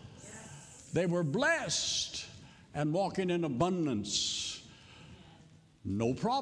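An elderly man speaks with animation through a microphone in a reverberant hall.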